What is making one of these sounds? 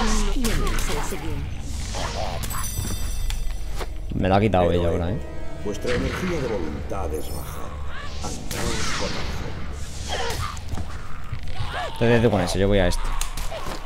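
Blades strike and clash in a fight.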